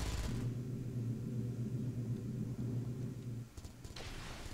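Spaceship engines hum with a low, steady drone.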